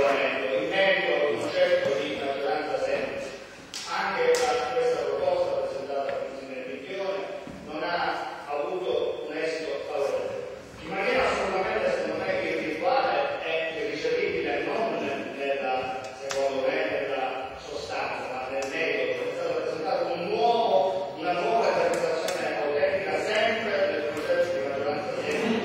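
A man speaks steadily into a microphone in a large echoing hall.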